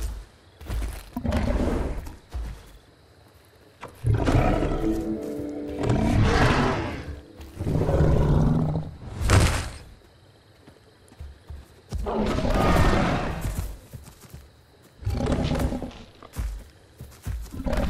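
A large dinosaur roars and growls loudly.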